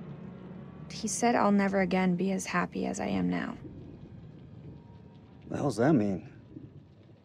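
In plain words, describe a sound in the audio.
A young woman talks quietly nearby.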